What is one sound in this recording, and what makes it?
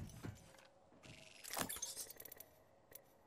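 A short electronic chime sounds as a menu opens.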